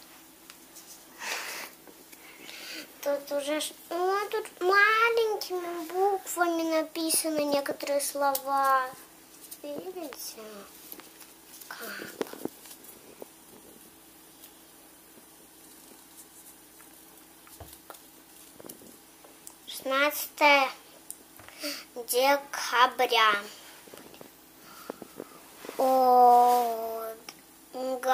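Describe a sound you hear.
Paper rustles and crinkles in a young girl's hands.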